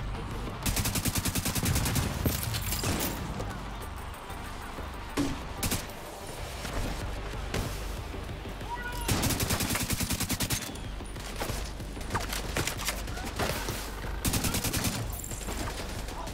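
Rifles fire in rapid bursts, loud and close.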